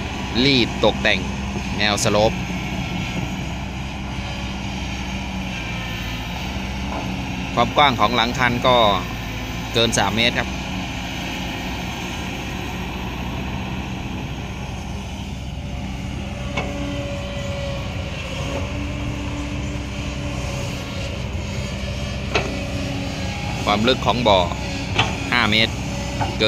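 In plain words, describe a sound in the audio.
Metal parts of an excavator squeal and creak in bursts.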